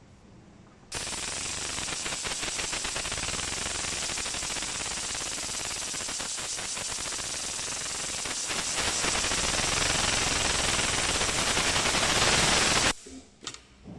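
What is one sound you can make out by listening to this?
An industrial sewing machine stitches with a fast, steady whir and rapid ticking, growing a little louder.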